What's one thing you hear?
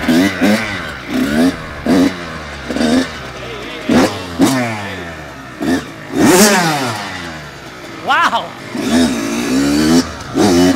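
A dirt bike engine revs loudly in sharp bursts, rising and falling in pitch.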